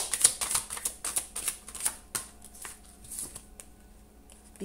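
Playing cards shuffle with quick, papery flicks.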